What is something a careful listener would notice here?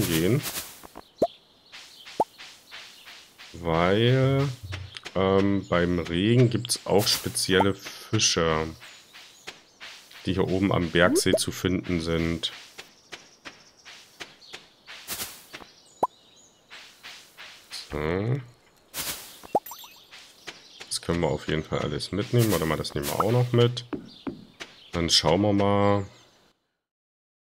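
Light footsteps patter on grass and dirt.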